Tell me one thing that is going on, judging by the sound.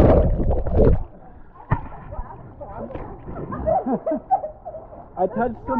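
Water splashes and laps.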